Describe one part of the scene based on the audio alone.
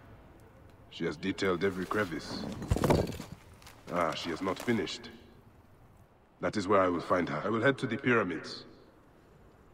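A man speaks in a low, calm voice.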